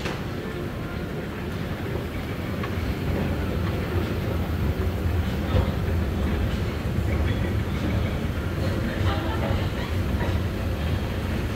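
An escalator hums and rumbles steadily, growing louder up close.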